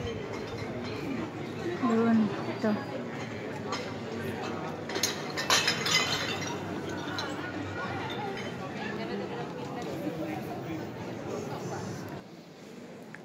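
A crowd chatters outdoors in the open air.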